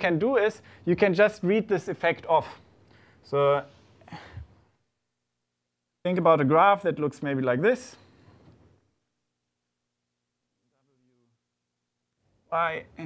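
A young man speaks calmly, lecturing.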